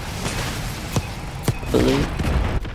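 An explosion booms on the ground.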